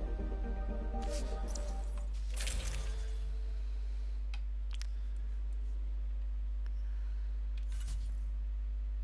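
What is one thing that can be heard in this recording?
Short electronic menu clicks sound now and then.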